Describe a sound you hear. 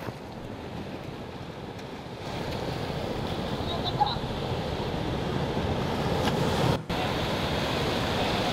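Waves wash onto a beach.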